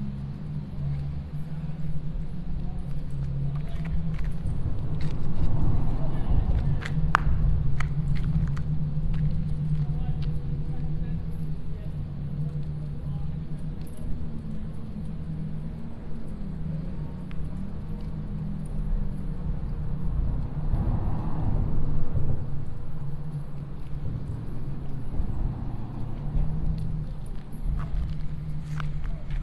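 Wind blows steadily across an open waterfront.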